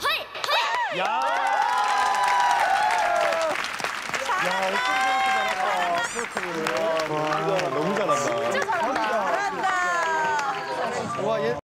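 Young men and women cheer and shout excitedly through microphones.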